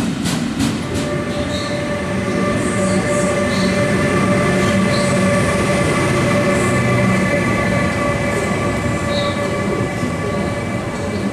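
An electric passenger train rolls in with a steady whine.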